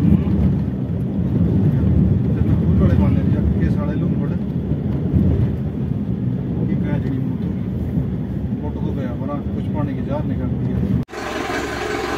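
A vehicle drives through deep floodwater with a low rumbling splash.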